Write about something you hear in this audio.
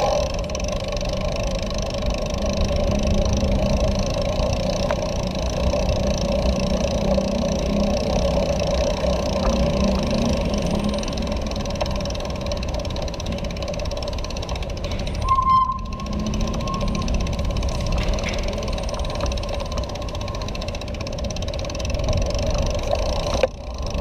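Bicycle tyres roll and rattle over paving stones.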